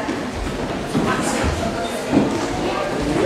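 A young woman speaks through a microphone over loudspeakers.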